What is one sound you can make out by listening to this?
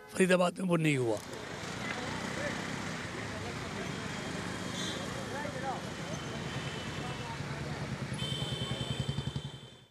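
Traffic hums along a busy street.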